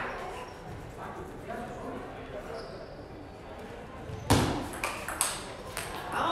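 A table tennis ball clicks back and forth off paddles and the table in a large echoing hall.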